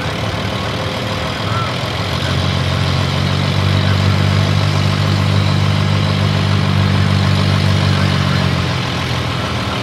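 A tractor engine roars loudly as it pulls a heavy sled, then eases off.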